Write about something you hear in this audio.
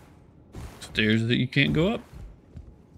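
A young man speaks with animation close to a microphone.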